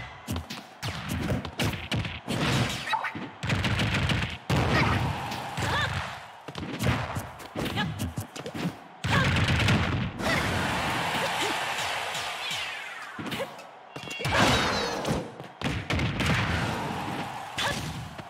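Whooshing attacks and smoke trails rush past.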